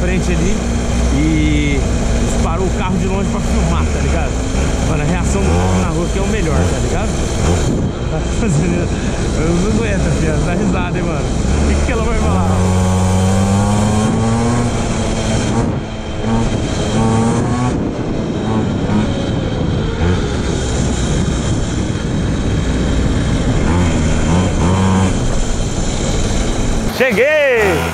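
A small motorbike engine buzzes loudly, revving up and down as it rides.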